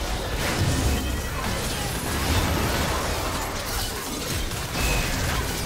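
Spell effects whoosh and blast in quick succession during a fight.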